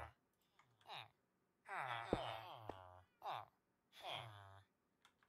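A game villager mumbles in short nasal grunts, again and again.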